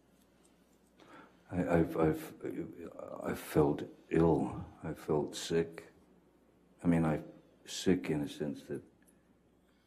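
A man speaks slowly and haltingly into a microphone.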